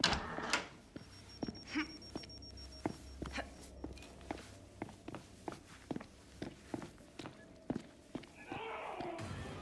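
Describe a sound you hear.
Footsteps thud steadily on a wooden floor and stairs.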